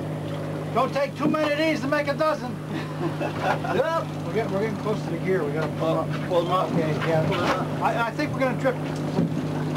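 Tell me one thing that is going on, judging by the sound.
A man talks loudly outdoors over the engine.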